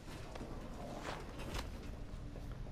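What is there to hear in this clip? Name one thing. A heavy punch lands with a dull thud.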